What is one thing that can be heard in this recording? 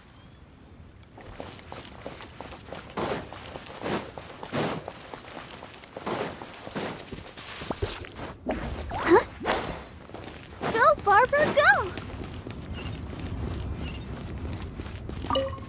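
Footsteps run quickly across stone paving.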